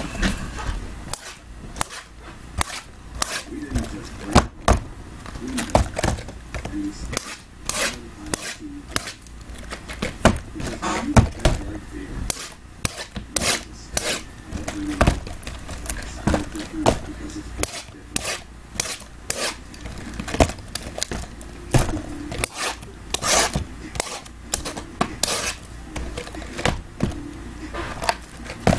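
Cardboard boxes knock and slide against each other as they are handled.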